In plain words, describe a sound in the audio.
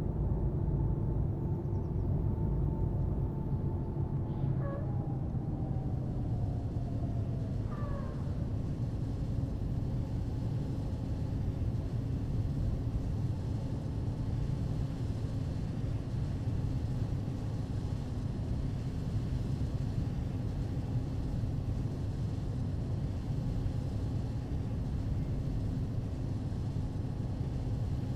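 A bus engine hums steadily and its pitch falls as it slows.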